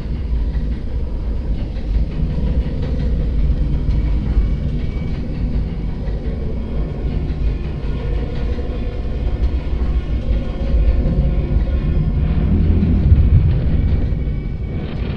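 A metal lift rumbles and hums steadily as it moves.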